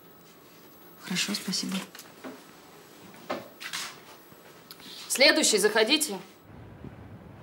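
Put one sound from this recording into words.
A middle-aged woman answers calmly close by.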